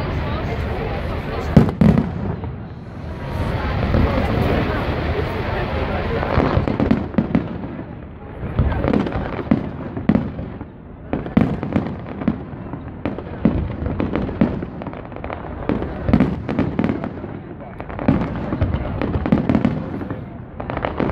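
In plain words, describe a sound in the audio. Fireworks bang and crackle repeatedly in the open air.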